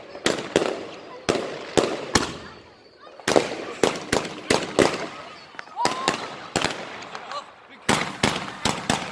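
Fireworks bang and crackle in quick bursts nearby.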